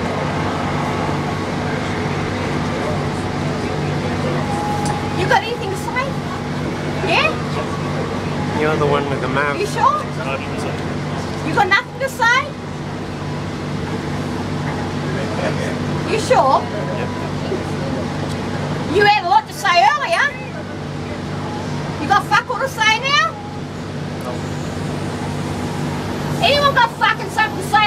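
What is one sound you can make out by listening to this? A train carriage rumbles with a steady low hum.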